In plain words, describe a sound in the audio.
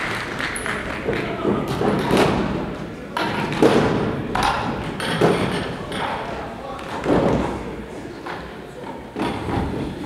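Music stands knock and clatter as they are moved across a stage.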